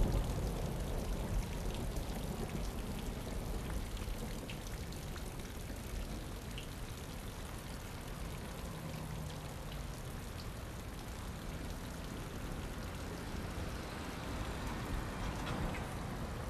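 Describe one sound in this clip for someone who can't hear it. Light rain falls steadily outdoors.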